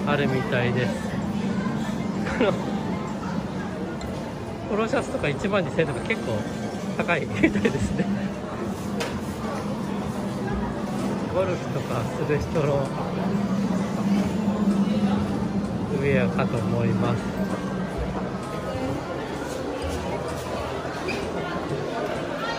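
A crowd of people murmurs and chatters in a busy indoor hall.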